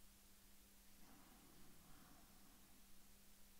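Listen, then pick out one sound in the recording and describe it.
A man murmurs quietly close to a microphone.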